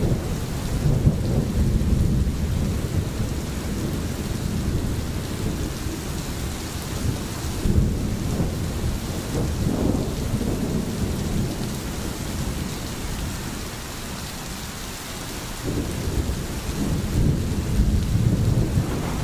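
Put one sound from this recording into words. Rain falls steadily on trees and a roof.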